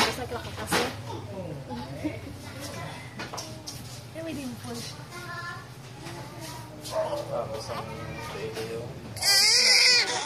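A newborn baby fusses and whimpers close by.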